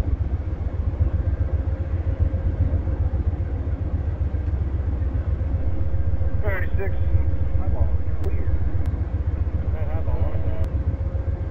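A stopped passenger train idles with a low, steady rumble.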